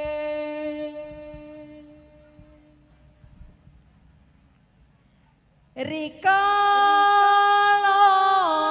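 A young man sings a long, held melody into a microphone, loud and close.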